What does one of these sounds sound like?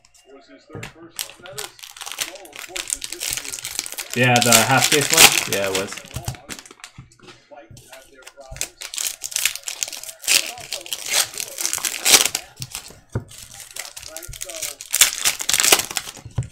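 Foil card wrappers crinkle and tear as they are opened.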